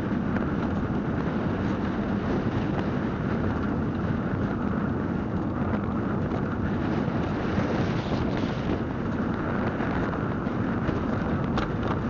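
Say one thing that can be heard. A vehicle's engine hums steadily as it drives along a road.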